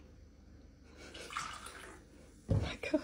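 Soda glugs as it is poured into a glass.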